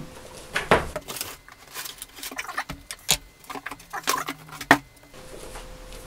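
Cardboard rustles and thumps as a box is opened.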